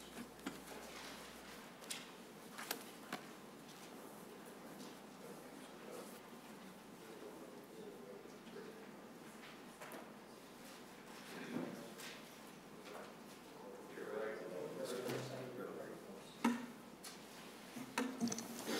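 Men murmur quietly at a distance in a large room.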